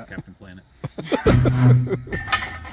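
A metal pry bar thuds against a van.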